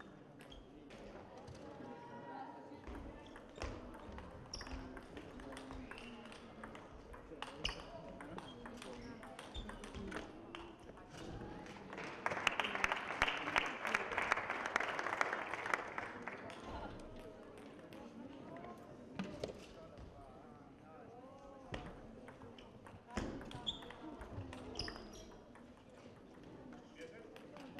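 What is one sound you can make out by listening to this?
A table tennis ball clicks back and forth on bats and the table in a large echoing hall.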